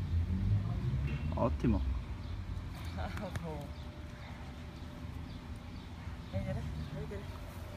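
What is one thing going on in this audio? A young woman speaks softly and encouragingly to a dog close by.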